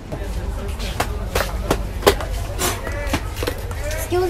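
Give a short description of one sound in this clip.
Handbags rustle and knock as a man pulls them from a shelf.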